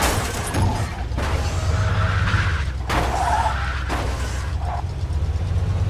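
A car crashes and thuds against a hedge.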